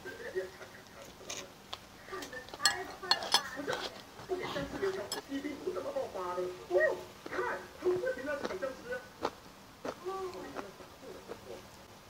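A spoon clinks against a glass.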